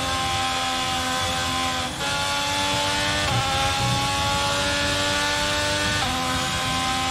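A racing car engine screams at high revs, its pitch climbing and dropping sharply with each gear change.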